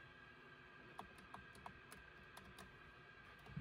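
Light plastic clicks and taps come from a car stereo being handled.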